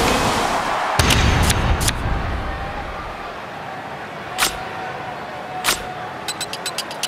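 A game's sound effects click and chime as cards are placed.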